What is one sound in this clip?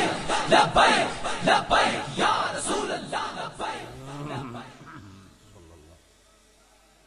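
A large crowd chants loudly in unison, echoing.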